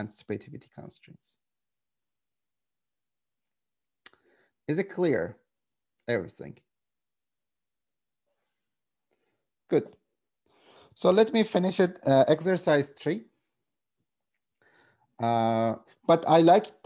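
A man speaks calmly over an online call, with pauses between phrases.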